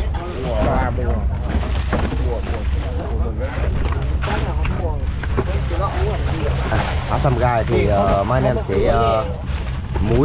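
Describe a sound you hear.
Ice crunches and rustles under hands.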